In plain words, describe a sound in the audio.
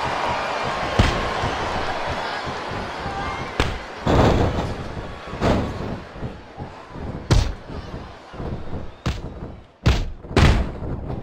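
Heavy thuds and slams ring out as wrestlers hit each other and the ring mat.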